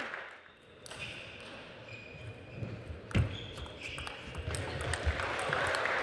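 A table tennis ball clicks back and forth off paddles and the table.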